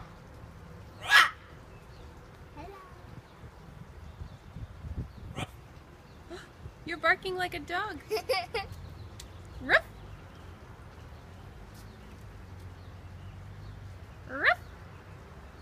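A parrot squawks loudly now and then from a tree.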